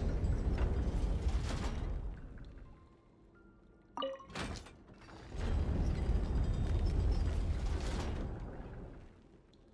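A heavy stone mechanism rumbles deeply as it turns.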